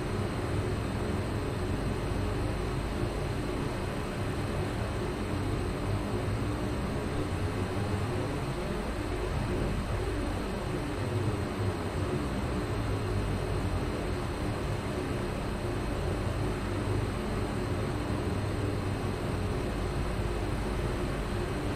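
A train's engine hums steadily at a standstill.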